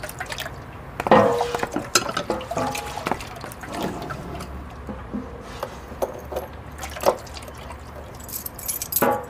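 Metal parts clank and rattle close by.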